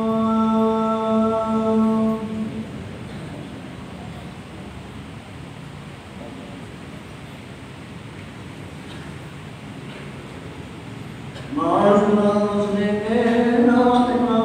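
A man chants a prayer through a loudspeaker in an echoing hall.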